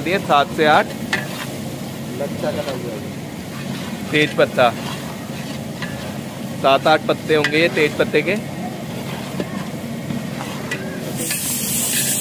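A metal ladle scrapes and stirs rice in a large metal pot.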